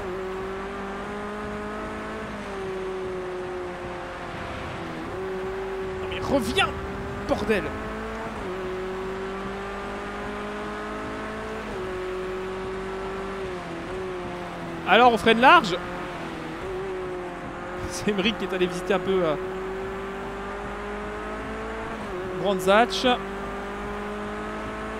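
A racing car engine drones steadily and shifts gears.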